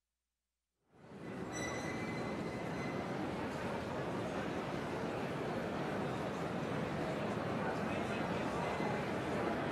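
A large crowd chatters and murmurs in a large echoing hall.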